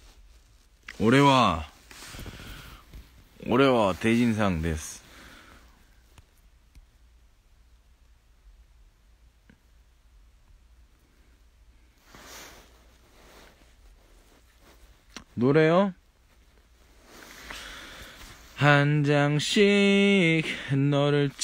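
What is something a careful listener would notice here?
A young man sings loudly in short bursts, close by.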